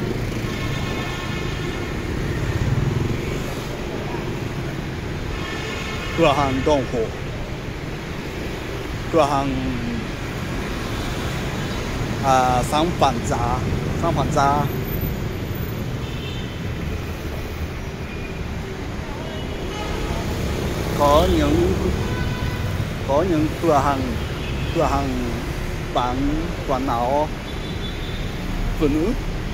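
A low hum of traffic carries on outdoors.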